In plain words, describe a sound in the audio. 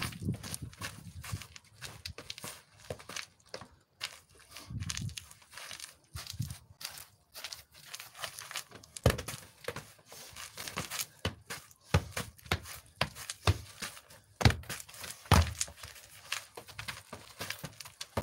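A ball thuds as it is kicked close by.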